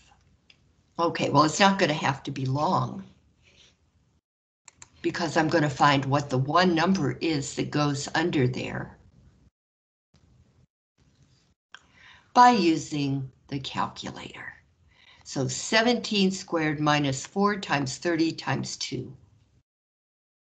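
A man speaks calmly through a microphone, explaining in pauses.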